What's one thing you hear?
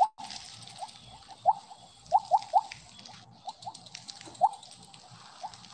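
Short rising electronic blips chirp again and again.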